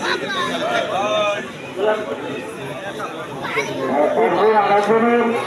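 Several men talk and chatter together nearby.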